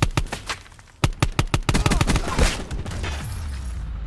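A pistol fires a quick burst of shots.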